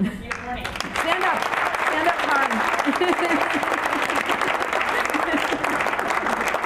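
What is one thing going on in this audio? A woman speaks cheerfully over the applause.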